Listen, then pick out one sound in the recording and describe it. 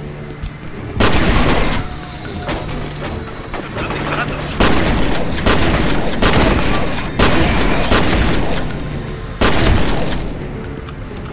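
A rifle fires loud rapid bursts that echo in a large hard space.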